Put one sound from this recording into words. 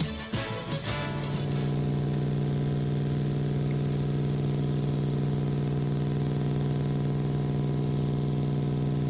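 A video game car engine drones with a steady electronic hum.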